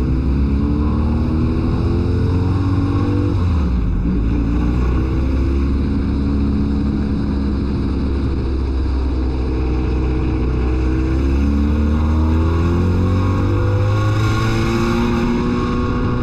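Tyres rumble over a dirt track.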